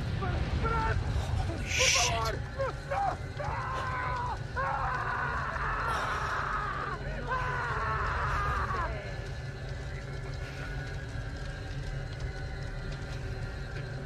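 A large bonfire roars and crackles.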